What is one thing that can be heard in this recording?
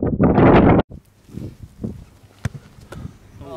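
A football thuds off a foot.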